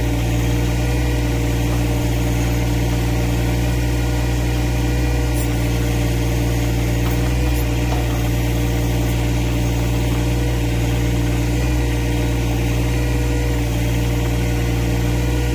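A backhoe bucket scrapes into dirt.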